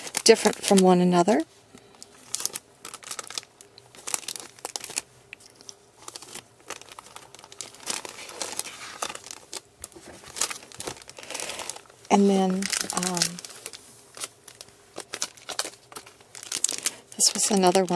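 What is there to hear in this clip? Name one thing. Plastic sleeves crinkle and rustle as cards are handled.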